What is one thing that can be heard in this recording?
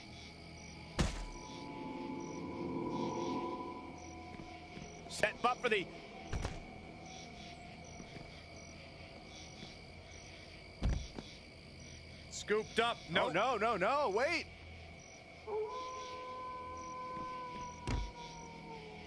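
Heavy thuds of punches and body slams land now and then.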